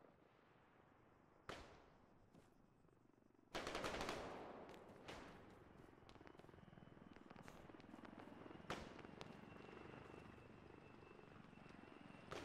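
Footsteps crunch on a dirt track.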